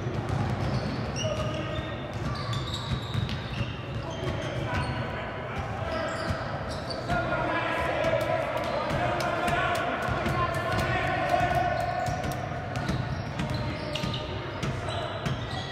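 Spectators call out and cheer from the sidelines.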